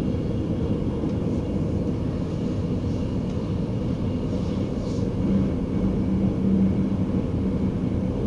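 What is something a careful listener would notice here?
An oncoming train rushes past close by.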